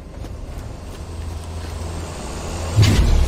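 A heavy vehicle's engine rumbles, growing louder as it approaches.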